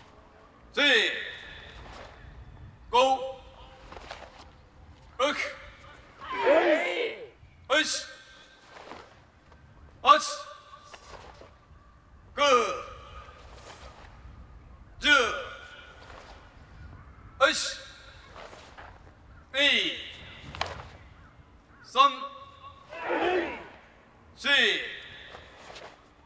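A large group of men and women shouts together in short, loud bursts at a steady beat, echoing outdoors.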